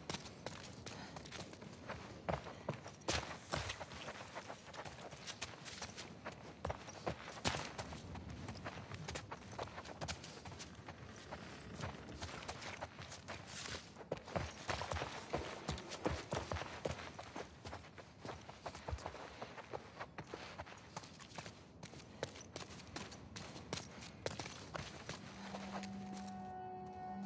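Footsteps crunch over debris on the floor.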